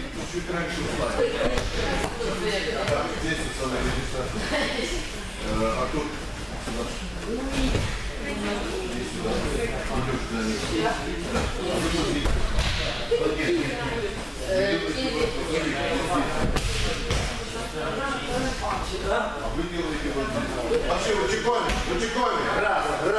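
Young people talk and call out nearby in an echoing hall.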